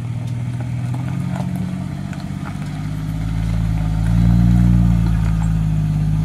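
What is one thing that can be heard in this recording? Bushes scrape against the side of an off-road truck.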